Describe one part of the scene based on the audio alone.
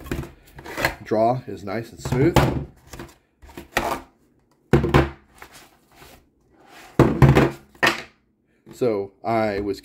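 Plastic magazines knock down onto a hard tabletop.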